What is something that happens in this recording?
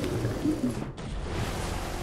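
Bubbles gurgle underwater.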